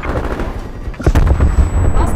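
A sniper rifle fires a single sharp shot.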